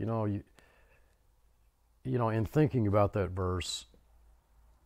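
An older man speaks calmly and close to a microphone.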